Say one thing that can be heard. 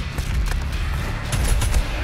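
A fireball explodes with a loud blast.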